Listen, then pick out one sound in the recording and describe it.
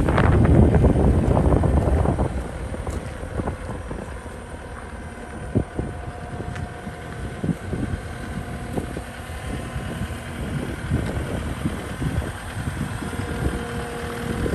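A diesel engine rumbles steadily nearby, loudest at first.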